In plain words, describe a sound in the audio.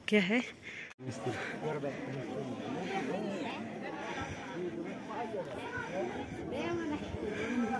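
A crowd of men and women chatter at a distance outdoors.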